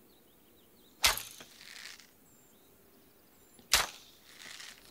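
A bowstring snaps sharply as arrows are loosed.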